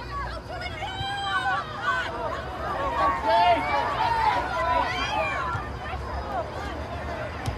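Spectators nearby call out and cheer loudly.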